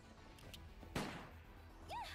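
A blast bursts with a loud crack.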